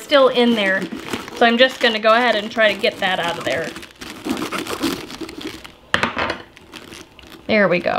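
A knife cuts into a cabbage with a crisp crunch.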